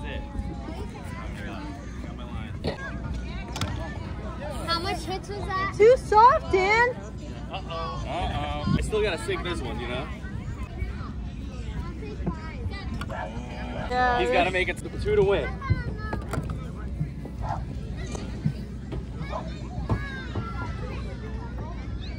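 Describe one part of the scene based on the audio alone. Children and adults chatter and call out nearby outdoors.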